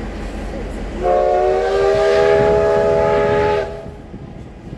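A train horn blares for a few seconds.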